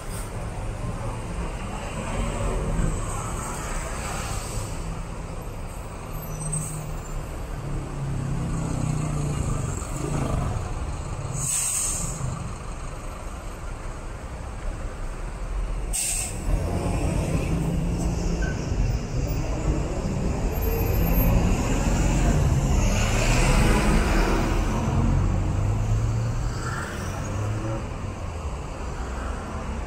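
Bus engines rumble and idle in busy street traffic.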